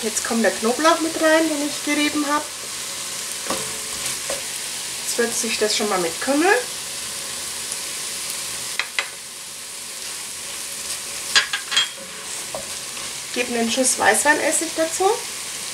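A wooden spoon stirs and scrapes food in a pot.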